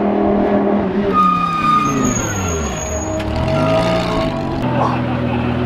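A race car speeds past with a roar that drops in pitch.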